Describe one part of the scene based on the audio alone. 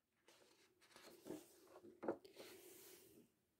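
A page of a book turns with a soft paper rustle.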